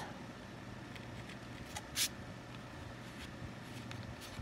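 A fine pen scratches softly across paper.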